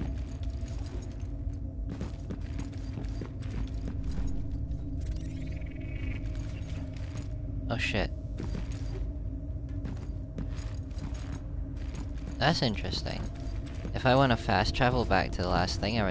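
Heavy footsteps clank on metal floors.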